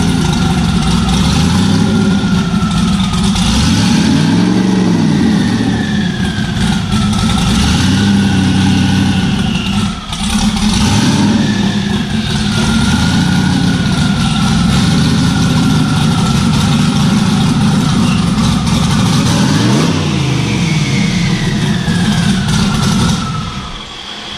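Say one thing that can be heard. A powerful car engine idles loudly with a deep, rough rumble.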